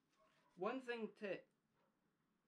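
A young man speaks briefly and casually close by.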